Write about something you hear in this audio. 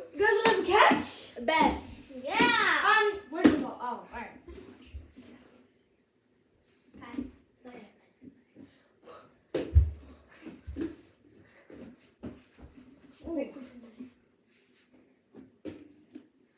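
A ball thumps against hands and the floor.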